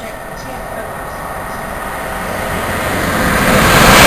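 Another train approaches, its rumble growing louder.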